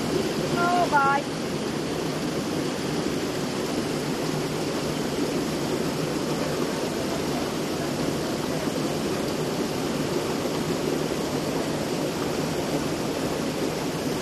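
Water sloshes as wet rugs are scrubbed in a tub.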